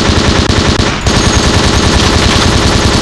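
A rotary machine gun fires a fast, continuous stream of shots.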